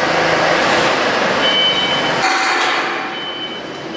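A metal duct clanks as it is set down.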